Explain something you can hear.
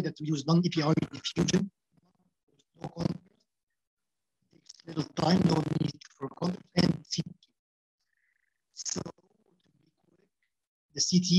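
A young man speaks calmly through a headset microphone on an online call, with pauses.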